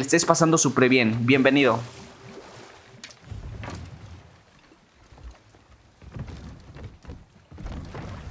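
Water laps gently against a wooden boat.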